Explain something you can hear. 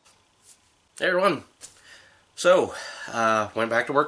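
A man speaks close by, calmly and casually.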